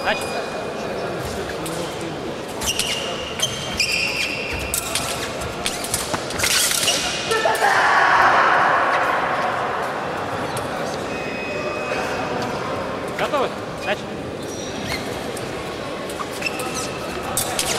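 Fencing blades clash and click in a large echoing hall.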